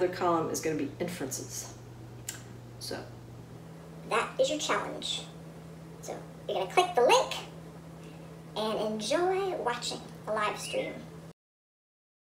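A woman talks with animation, close by.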